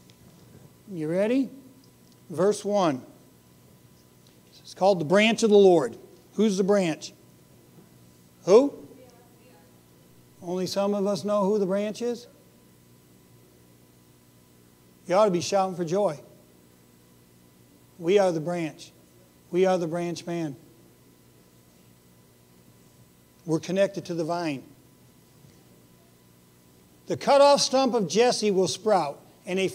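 A middle-aged man speaks calmly through a microphone, pausing between phrases.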